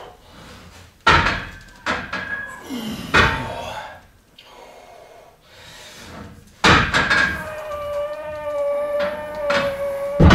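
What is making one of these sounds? A man grunts and breathes hard with effort.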